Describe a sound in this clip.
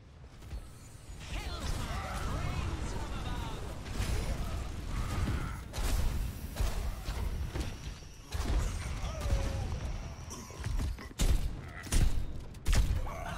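Game sound effects and battle noise play loudly.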